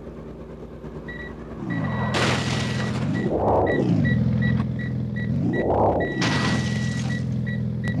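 A reversing warning beeps in quick, even pulses.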